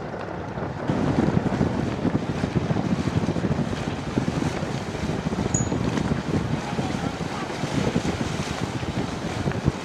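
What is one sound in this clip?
Water splashes against the hull of a passing sailboat.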